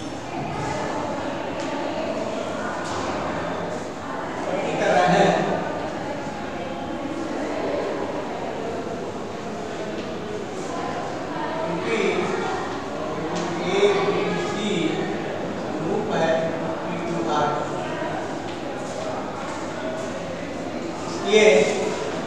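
A middle-aged man speaks calmly, close to a clip-on microphone.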